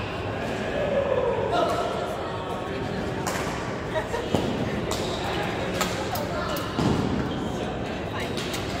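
Players' shoes squeak on a hard court floor.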